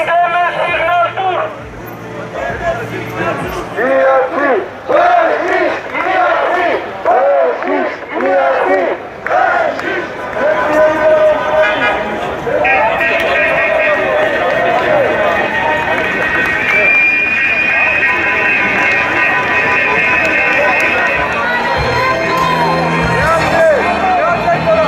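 A crowd of people murmurs and calls out all around.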